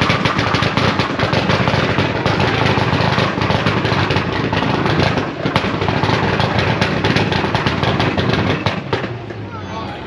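A race car engine roars loudly and crackles, then cuts off.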